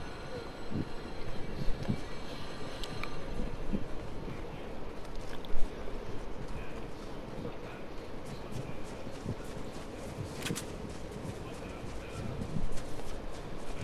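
Footsteps patter quickly over dirt and grass.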